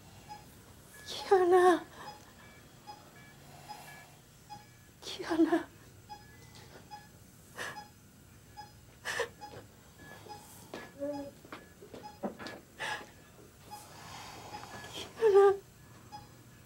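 A middle-aged woman sobs and cries nearby.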